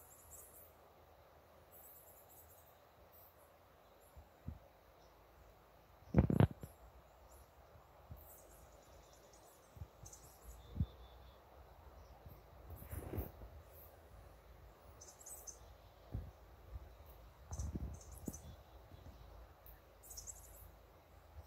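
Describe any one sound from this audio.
Small animal paws patter softly on a wet, hard surface.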